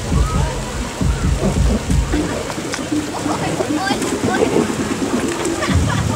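Young women shout and laugh excitedly nearby.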